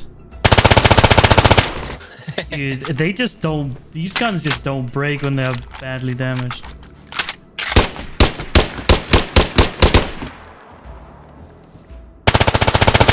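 An automatic rifle fires rapid bursts at close range.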